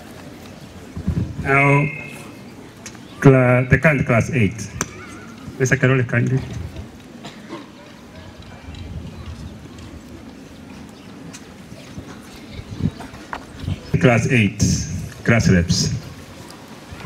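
A man speaks loudly through a microphone and loudspeaker outdoors, in short bursts.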